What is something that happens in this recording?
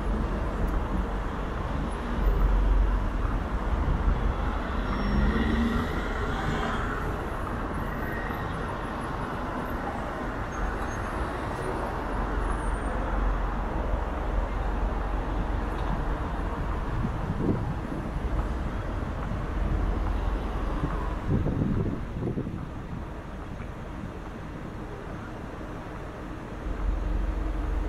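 A motorcycle engine idles and hums steadily.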